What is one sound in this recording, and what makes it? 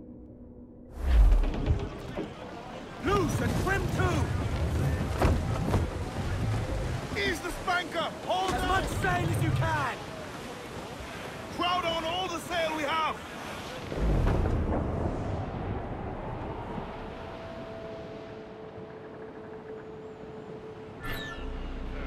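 Rough sea waves crash and surge against a wooden ship.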